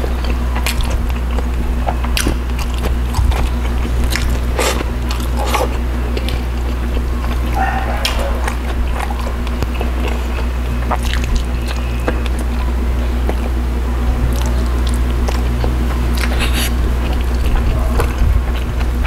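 A man chews food loudly and wetly, close to a microphone.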